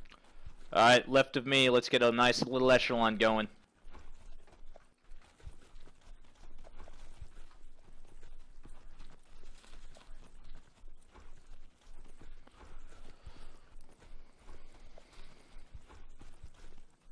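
Footsteps crunch over snow and gravel.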